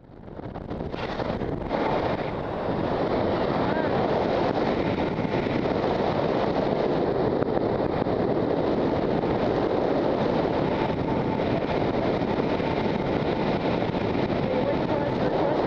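A man talks loudly over the wind.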